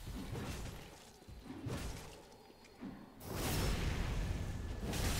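Metal swords clash and strike armour.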